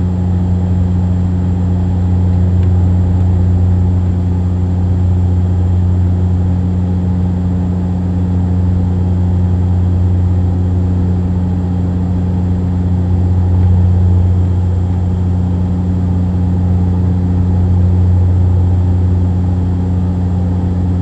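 An aircraft engine drones steadily with a low hum.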